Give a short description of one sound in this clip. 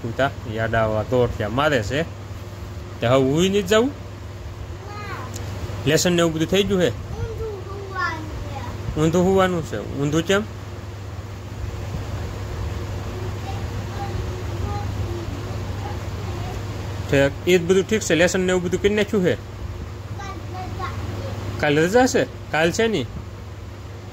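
A young boy talks in short bursts close by.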